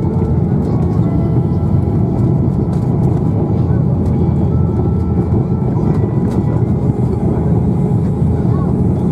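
Landing gear rumbles and rattles over the runway.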